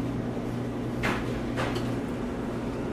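A pneumatic press hisses and clunks as it closes.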